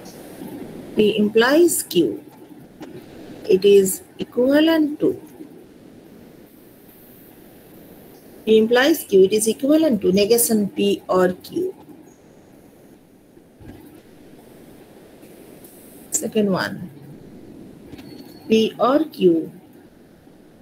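A woman speaks calmly through an online call, in short phrases with pauses.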